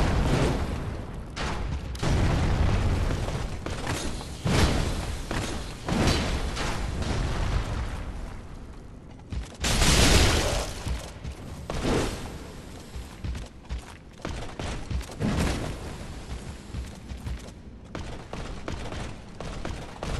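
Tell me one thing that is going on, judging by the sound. Armoured footsteps clank on stone steps.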